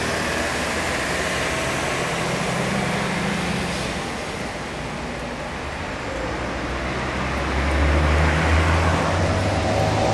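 A tram's motor hums steadily while it idles.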